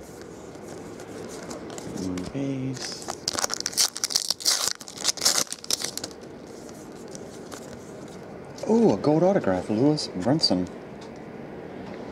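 Trading cards rustle and slide against each other as they are flipped through.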